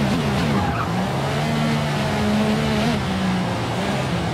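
A racing car engine idles low and burbles through a slow corner.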